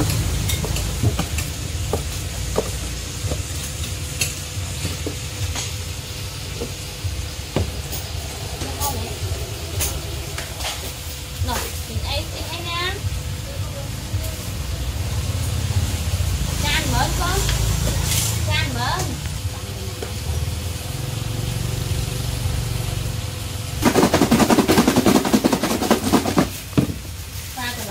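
Plastic containers clatter and tap against each other.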